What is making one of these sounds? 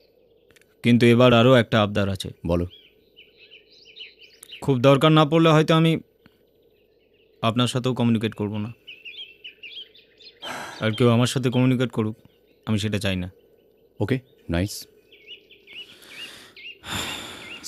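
A young man speaks in a low, firm voice close by.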